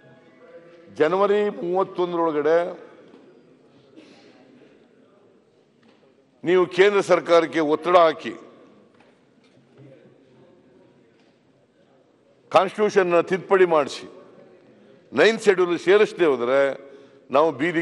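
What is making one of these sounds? An elderly man speaks firmly into a microphone, in short bursts with pauses.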